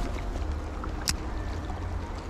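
A fishing reel clicks.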